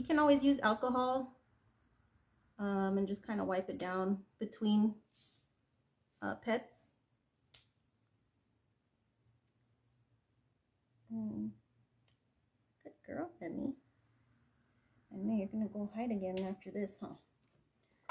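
A woman talks softly and close by, in short bursts.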